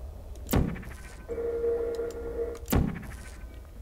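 A portal gun fires with a sharp zap.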